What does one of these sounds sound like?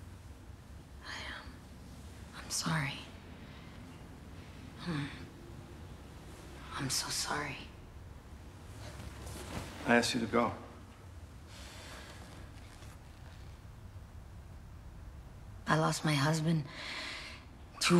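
A woman speaks tensely in short bursts close by.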